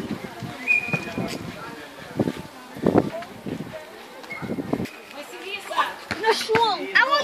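Teenage boys shout to each other outdoors during a football game.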